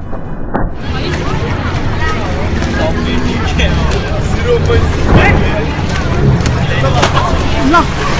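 A crowd of people cheers and shouts loudly outdoors.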